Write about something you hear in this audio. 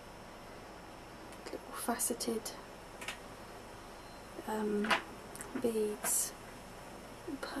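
Small plastic beads click softly together in a hand.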